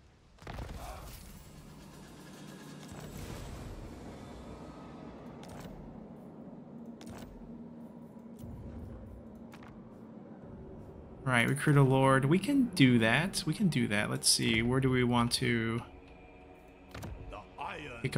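Interface clicks sound as menus open and close.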